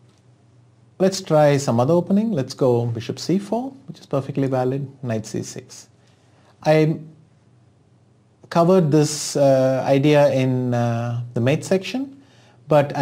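A man speaks calmly and explains into a close microphone.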